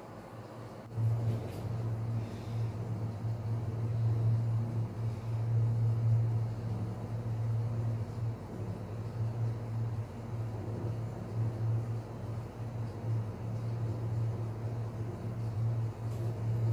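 A machine hums low and steadily.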